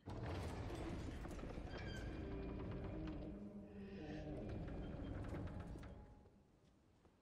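A heavy wooden door creaks and grinds slowly open.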